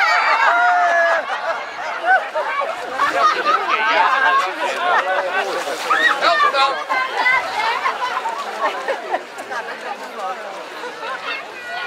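Water splashes in a pool.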